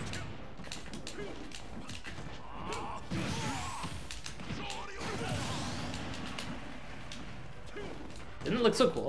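Punches and kicks thud and crack in a video game fight.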